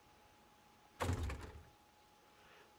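A wooden cabinet door closes with a dull thud.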